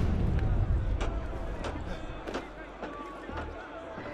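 Wooden shutters swing open.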